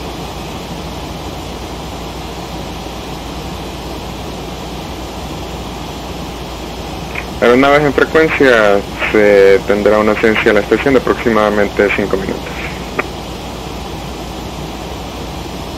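A jet airliner's engines drone steadily.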